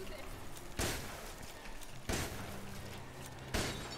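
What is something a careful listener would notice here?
A shotgun fires with a heavy blast.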